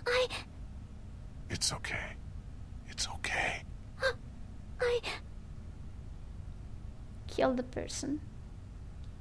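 A man speaks softly and comfortingly, close by.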